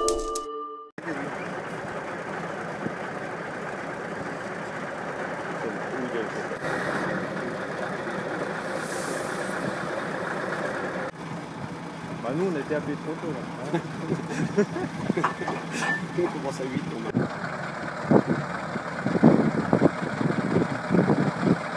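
A truck engine idles with a steady low rumble outdoors.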